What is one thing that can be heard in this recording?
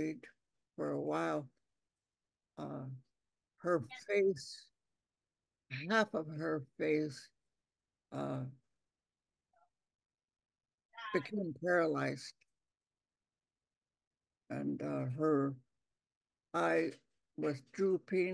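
An elderly woman speaks slowly and calmly over an online call, with long pauses.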